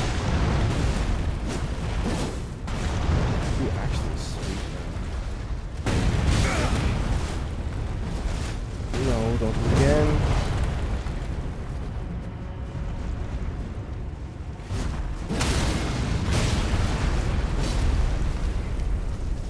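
Heavy blows and blade strikes crash repeatedly.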